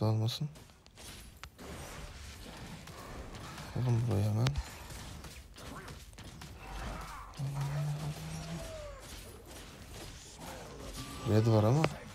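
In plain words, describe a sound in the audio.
Fighting sound effects from a video game whoosh, clash and crackle.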